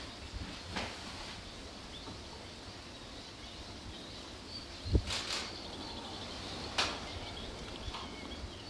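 Wind blows steadily outdoors, rustling through reeds.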